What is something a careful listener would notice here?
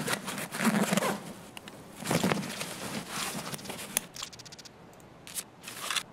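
Short clicks and rustles sound as items are dragged into place.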